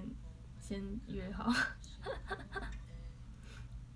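A young girl laughs brightly close by.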